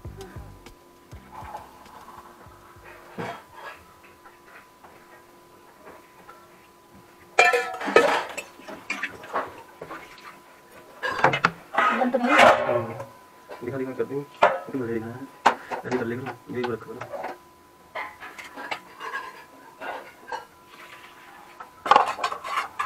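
Metal pots and utensils clink and clatter close by.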